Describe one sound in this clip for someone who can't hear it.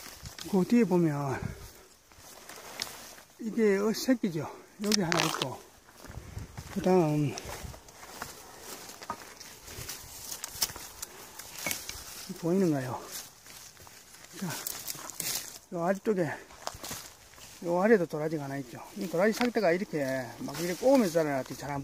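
Leaves and dry twigs rustle close by.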